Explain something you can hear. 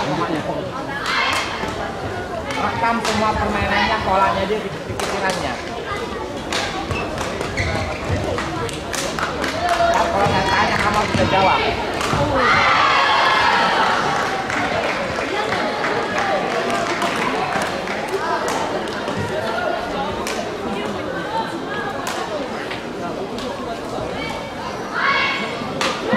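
Young women shout with excitement nearby.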